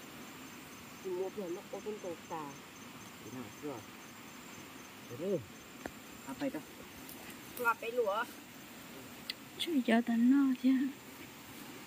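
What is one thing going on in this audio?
A boy talks casually nearby, outdoors.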